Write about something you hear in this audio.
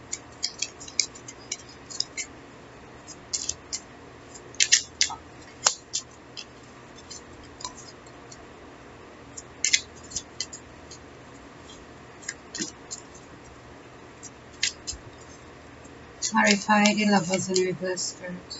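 Playing cards are shuffled by hand, with soft flicks and clicks.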